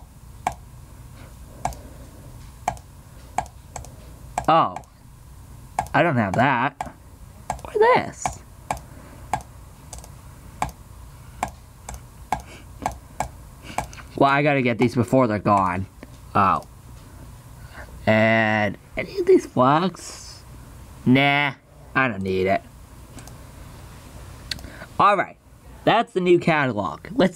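A game menu gives short, quick clicks.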